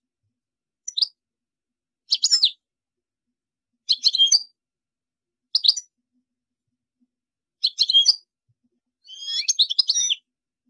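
A small songbird twitters in short, bright bursts with pauses between them.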